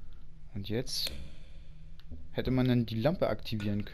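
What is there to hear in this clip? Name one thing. A lamp switch clicks once.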